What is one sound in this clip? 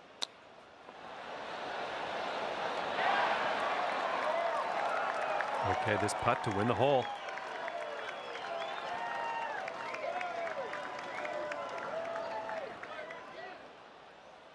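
A large crowd cheers, whistles and applauds loudly, then dies down.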